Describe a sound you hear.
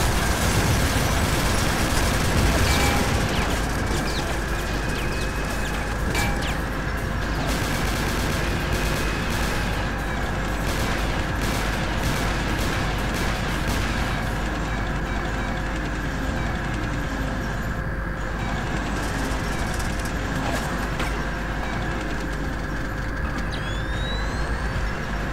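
A tank engine rumbles steadily.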